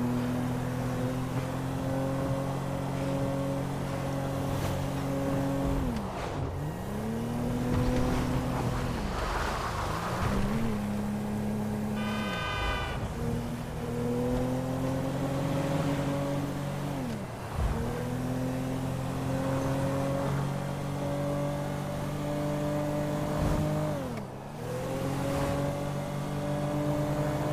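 A car engine revs and drops in pitch as it shifts gears.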